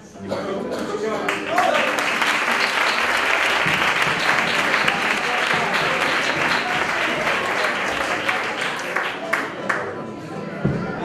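An audience claps and cheers loudly in a hall.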